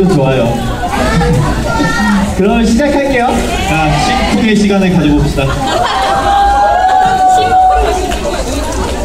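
A young man speaks animatedly into a microphone over loudspeakers in a large hall.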